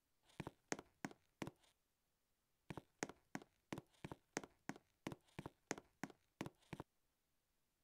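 Game footsteps patter quickly on grass.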